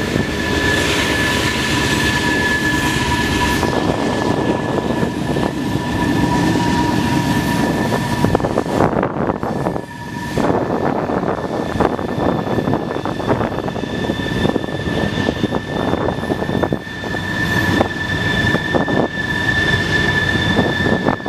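A freight train rumbles past steadily.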